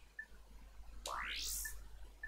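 A rising electronic whoosh sweeps upward.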